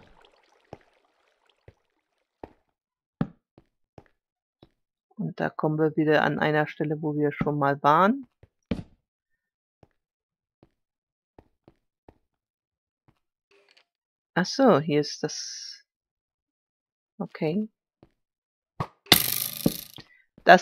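Footsteps tap softly on stone.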